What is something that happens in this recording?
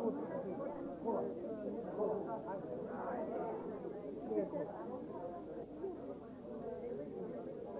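A crowd of men and women chatter at close range in a busy room.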